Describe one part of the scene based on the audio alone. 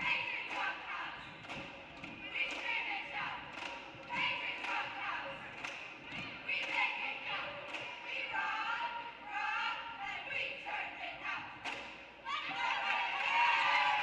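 A group of young women chant cheers in unison, echoing in a large gym.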